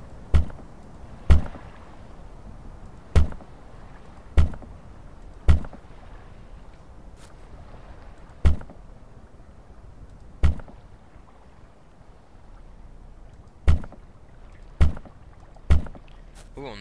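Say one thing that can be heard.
Heavy wooden logs thud into place one after another.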